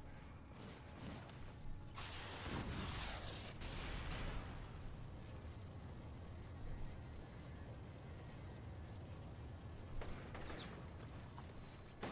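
Flames crackle and roar nearby.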